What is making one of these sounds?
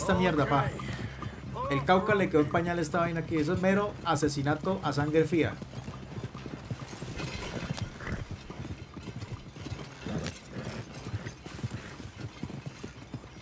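A wagon rattles along.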